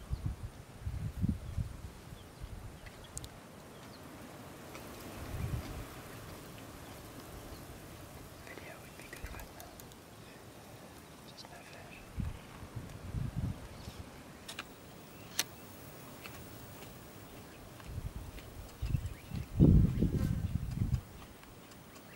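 A cheetah tears and chews meat from a carcass, with faint crunches of bone.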